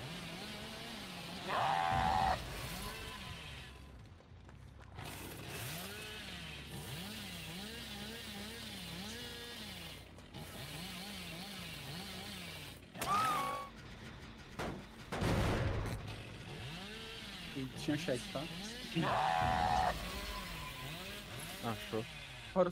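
A chainsaw idles with a wavering drone.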